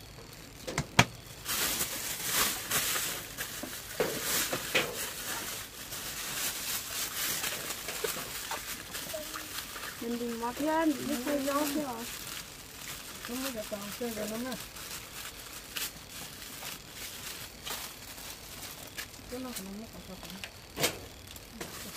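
Dishes clink and knock.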